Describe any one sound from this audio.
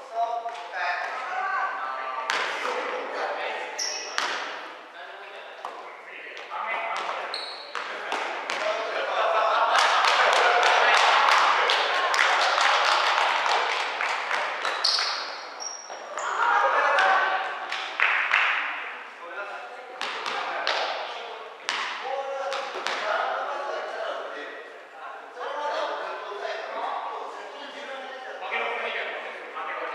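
Young men shout and call out to each other.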